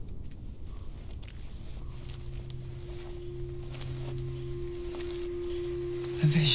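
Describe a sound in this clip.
Footsteps approach slowly on hard ground.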